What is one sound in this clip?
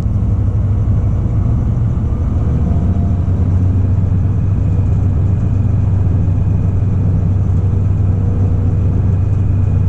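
Wind buffets loudly past outdoors.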